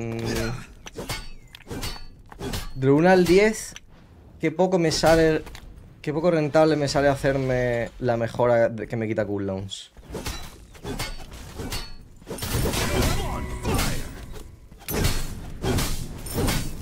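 Game spells and hits whoosh and crack in quick bursts.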